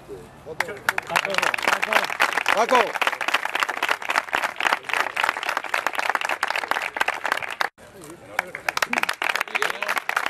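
People clap their hands in applause outdoors.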